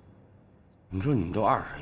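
A middle-aged man speaks sternly nearby.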